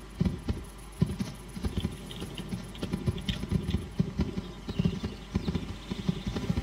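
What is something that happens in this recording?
Footsteps thud through dry grass.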